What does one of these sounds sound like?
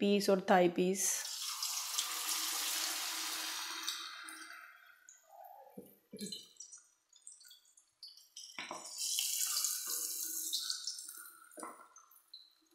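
Pieces of meat sizzle loudly as they drop into hot oil.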